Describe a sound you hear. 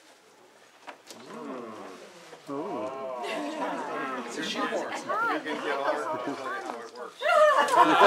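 A man talks with animation nearby.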